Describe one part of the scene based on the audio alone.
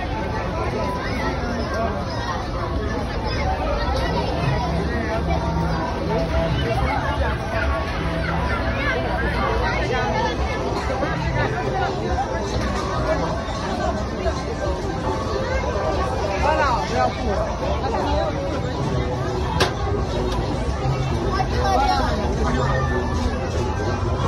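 A crowd of people talks and shouts.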